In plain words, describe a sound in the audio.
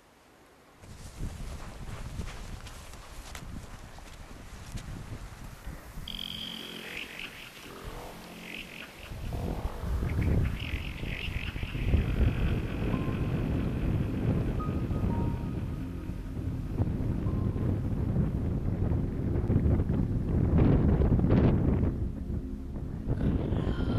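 Wind blows hard across an open hillside, buffeting the microphone.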